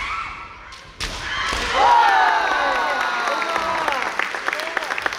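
Fencers shout loud, piercing cries in a large echoing hall.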